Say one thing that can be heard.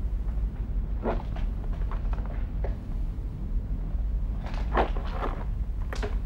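A man speaks quietly and briefly nearby.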